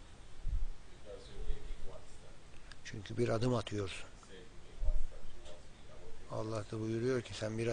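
A man speaks calmly and slowly, close by.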